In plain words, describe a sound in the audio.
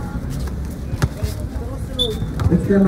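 A basketball bounces on concrete.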